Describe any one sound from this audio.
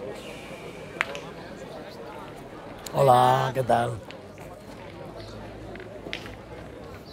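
Metal balls clack together on gravel.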